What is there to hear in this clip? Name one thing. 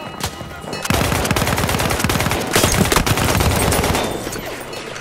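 A submachine gun fires rapid bursts up close.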